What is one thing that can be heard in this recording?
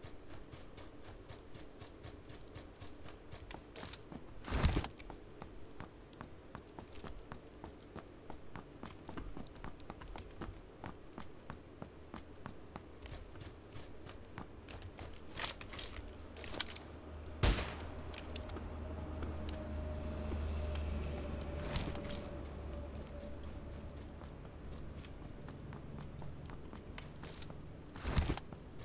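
Quick footsteps thud and rustle through grass.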